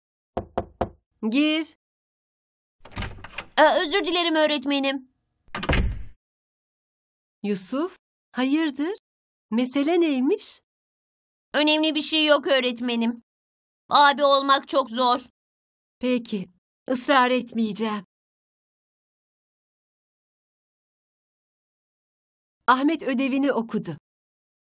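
A woman speaks calmly and clearly, close by.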